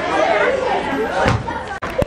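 Young girls chatter and laugh close by.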